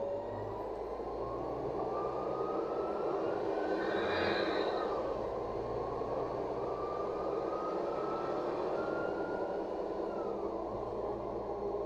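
A city bus's drivetrain whine rises in pitch and then drops.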